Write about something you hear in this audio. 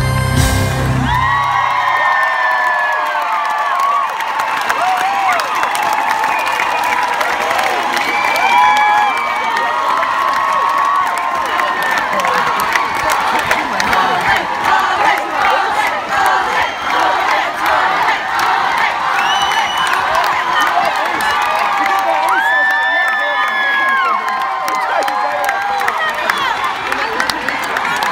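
A crowd of young women screams and cheers shrilly close by.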